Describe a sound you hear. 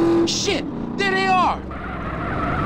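Motorcycle tyres screech on asphalt.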